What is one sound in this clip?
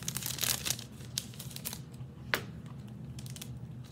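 A metal chain necklace jingles as it is lifted off a display bust.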